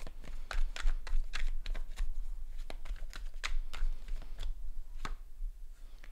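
Cards shuffle and click softly in a man's hands.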